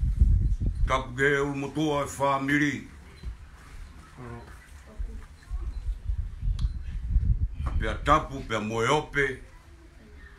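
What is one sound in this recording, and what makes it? A man's voice sings out loudly nearby, in short bursts.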